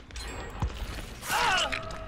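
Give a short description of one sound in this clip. A heavy blow strikes flesh with a wet thud.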